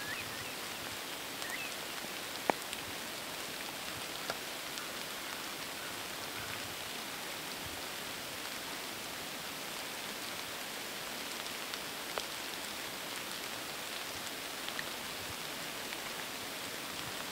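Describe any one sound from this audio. A deer steps softly through dry grass.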